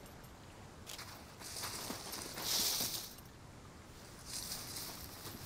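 Leafy branches rustle as someone pushes through a bush.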